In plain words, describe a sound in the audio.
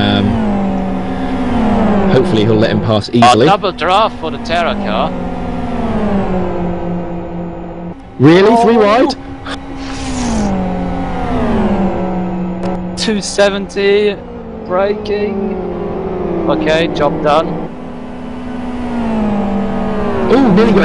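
Racing car engines roar and shift gears steadily.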